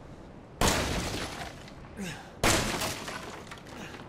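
A wooden crate splinters and breaks apart.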